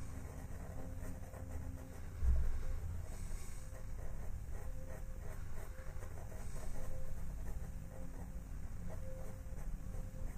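A pencil scratches softly on paper in short strokes.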